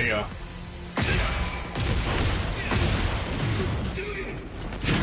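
Heavy punches and blows land with loud thuds and crashes.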